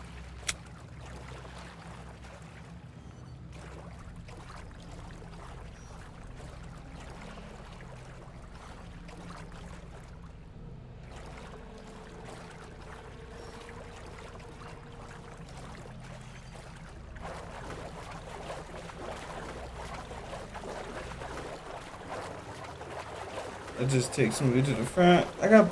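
Footsteps splash and slosh through shallow water.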